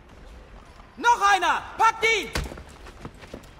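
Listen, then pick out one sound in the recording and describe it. Men shout gruffly close by.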